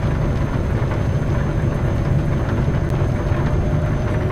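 Windscreen wipers swish back and forth.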